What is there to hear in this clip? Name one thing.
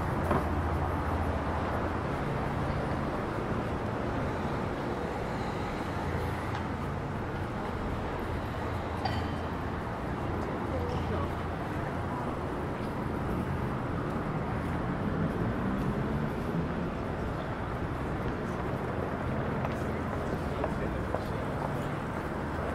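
A steady city hum fills an open street.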